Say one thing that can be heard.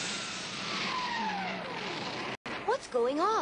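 A craft whooshes overhead with a falling whine.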